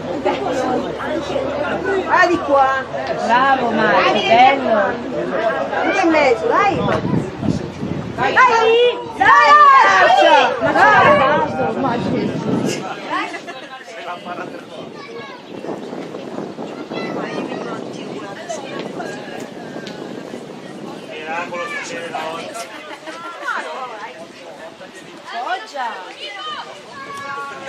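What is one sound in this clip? Men talk and shout close by outdoors.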